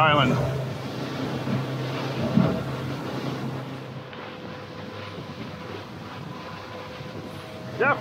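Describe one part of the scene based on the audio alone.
Water splashes and sprays against the hull.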